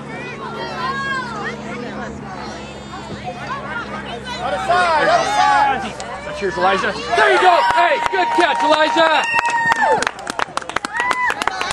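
Young children shout and cheer outdoors.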